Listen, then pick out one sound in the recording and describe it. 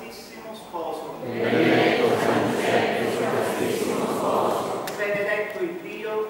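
A crowd of men and women sings together, echoing in a large hall.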